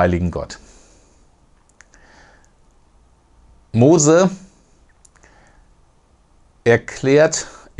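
A middle-aged man speaks calmly and closely into a microphone, pausing between phrases.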